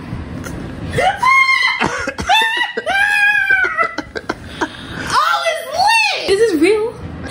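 A young woman shrieks and squeals loudly up close.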